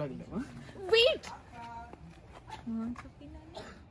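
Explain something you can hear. A young woman speaks playfully, close by.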